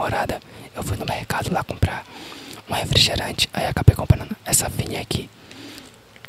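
A young man speaks softly and closely into a microphone.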